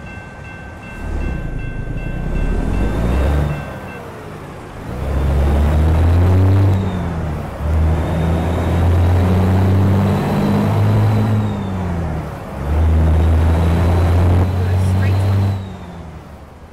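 A diesel cabover semi truck engine accelerates through the gears.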